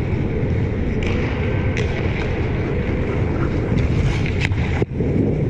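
Hockey sticks clack sharply against a puck now and then.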